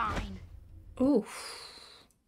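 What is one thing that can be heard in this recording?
A young woman speaks briefly and quietly, close by.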